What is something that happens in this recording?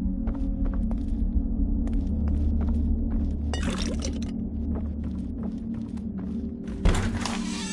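Footsteps thud on creaking wooden floorboards.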